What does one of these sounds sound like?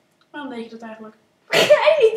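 A child asks a question nearby.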